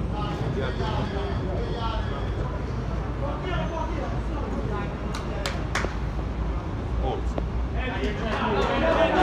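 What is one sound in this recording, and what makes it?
A crowd of men chatter nearby, outdoors.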